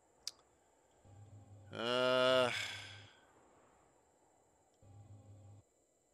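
A machine hums with a low drone that starts and stops.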